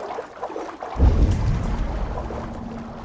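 A body plunges into water with a deep, heavy splash.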